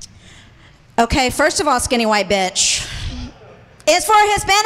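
A woman speaks with animation into a microphone in an echoing room.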